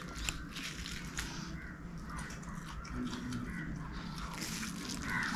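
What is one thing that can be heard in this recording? A man chews food wetly, close to a microphone.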